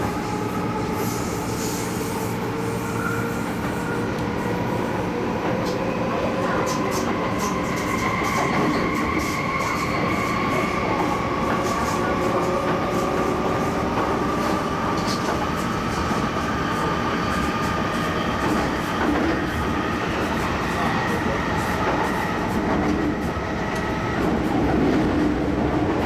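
A train's wheels click over rail joints.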